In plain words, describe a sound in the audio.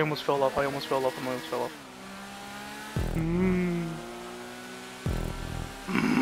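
A motorbike engine revs and drones.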